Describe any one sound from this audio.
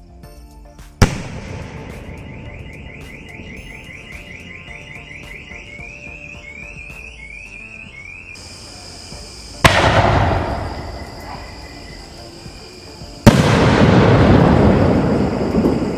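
Firework sparks crackle and hiss after each burst.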